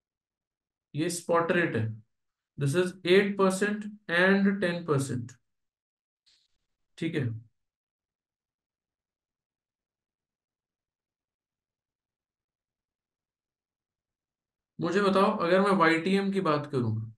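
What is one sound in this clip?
A man speaks calmly through a close microphone, explaining with pauses.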